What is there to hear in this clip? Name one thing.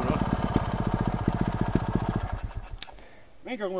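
A motorbike engine runs loudly close by, then cuts out.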